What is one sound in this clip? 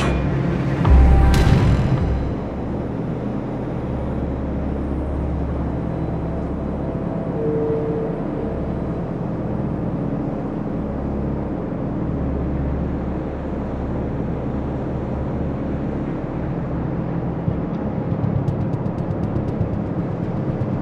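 A ship's engine rumbles low and steadily.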